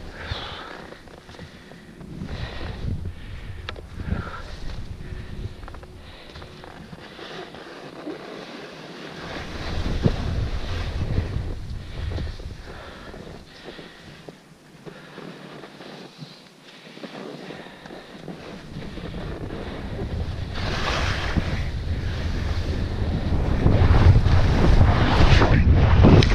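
Wind rushes loudly past, growing stronger toward the end.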